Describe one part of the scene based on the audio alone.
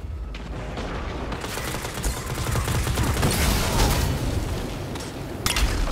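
Video game gunfire rattles.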